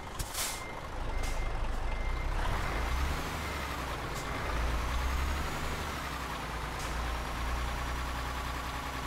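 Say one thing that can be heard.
A truck's diesel engine rumbles and revs up.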